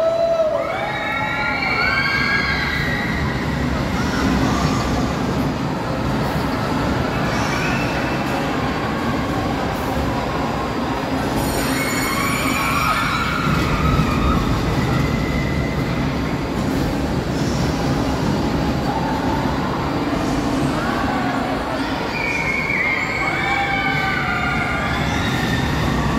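Roller coaster cars rattle and rumble along a track.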